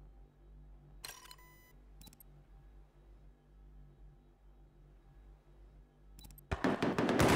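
Short electronic menu chimes and clicks sound.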